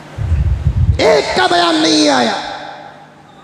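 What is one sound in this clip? An elderly man speaks with feeling into a microphone.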